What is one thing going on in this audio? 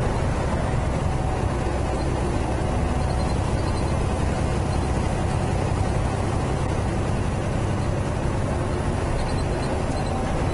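Tyres roar on the road surface.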